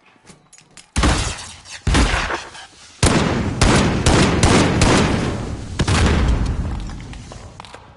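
Rapid gunfire rattles loudly and echoes.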